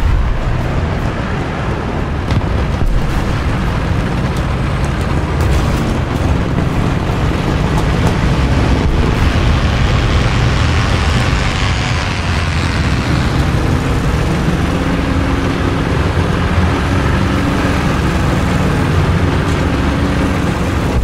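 A tank engine rumbles loudly and steadily.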